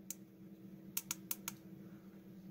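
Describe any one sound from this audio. Small buttons click sharply a few times.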